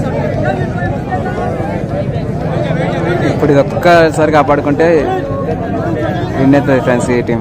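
A crowd of men chatters and shouts outdoors.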